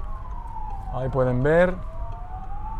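A siren gives a short rising whoop.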